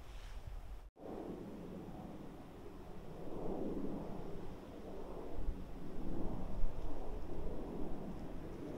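Wind gusts through pine trees outdoors.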